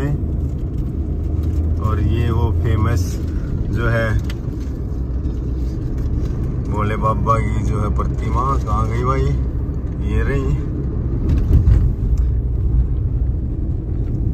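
A car drives along a road with a steady low rumble of the engine and tyres.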